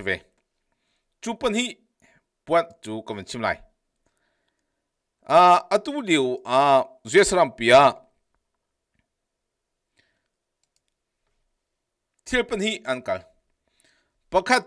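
A man speaks into a close microphone in short bursts with pauses.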